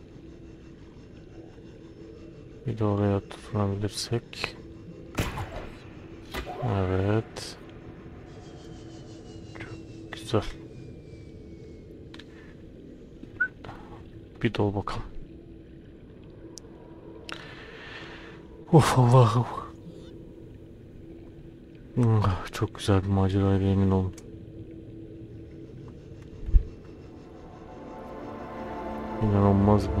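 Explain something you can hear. A diving suit's thrusters hum and bubble underwater.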